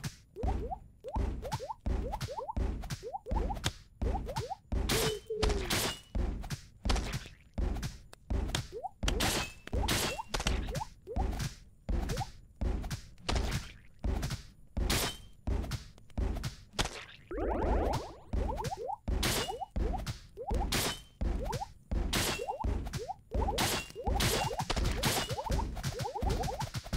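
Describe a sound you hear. Game hits land with quick, punchy thuds over and over.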